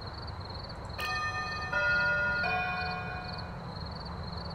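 A short musical game chime plays.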